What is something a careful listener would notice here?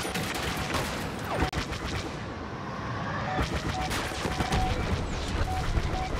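Laser cannons fire in short bursts.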